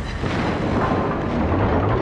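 Shells explode with a muffled crash.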